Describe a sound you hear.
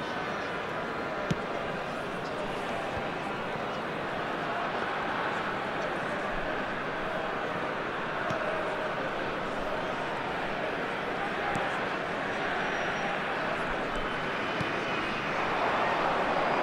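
A stadium crowd roars steadily in a large open space.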